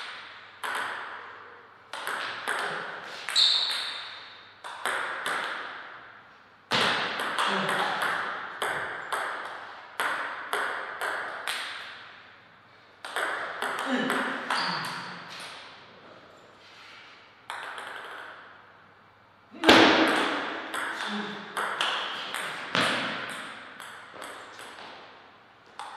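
A table tennis ball clicks sharply back and forth off paddles and a table, echoing in a large hall.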